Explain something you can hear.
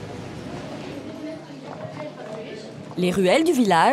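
Footsteps tap on a stone pavement.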